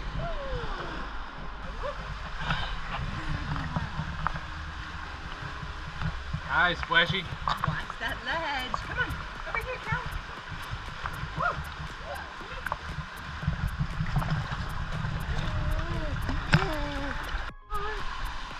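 Water splashes as a baby paddles in shallow water.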